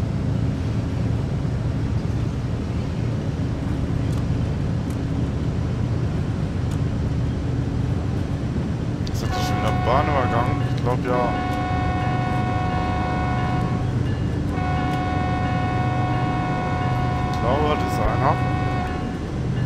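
A diesel locomotive engine rumbles steadily.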